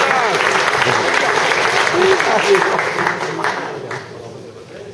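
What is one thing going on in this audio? A rock band plays loudly in a large echoing hall.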